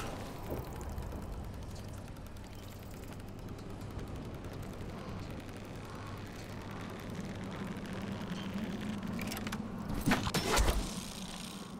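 A pulley whirs steadily along a taut cable.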